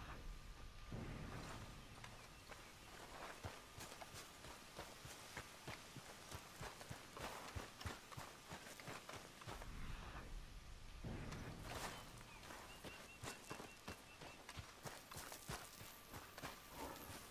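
Footsteps crunch on gravel and dry ground.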